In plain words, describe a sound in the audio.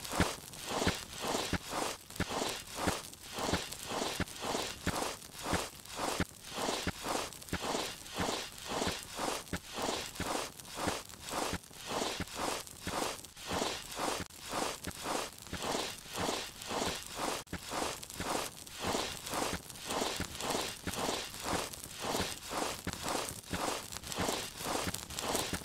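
Hands and knees scrape softly on stone while crawling.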